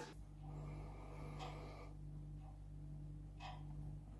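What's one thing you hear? A man gulps a drink.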